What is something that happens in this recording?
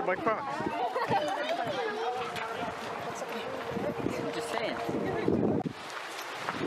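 Several young people chatter nearby outdoors.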